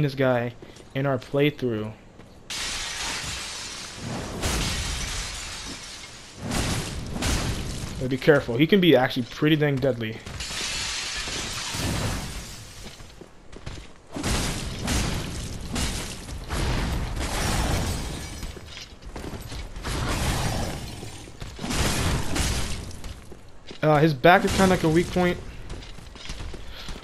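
A sword swings and strikes.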